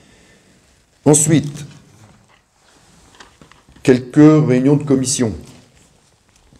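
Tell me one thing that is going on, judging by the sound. An elderly man speaks calmly into a microphone, in short phrases.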